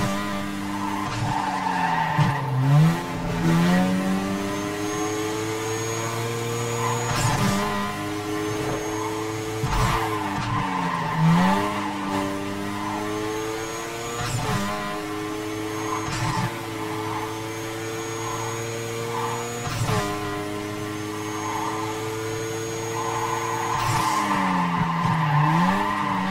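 A car engine roars and revs up through the gears.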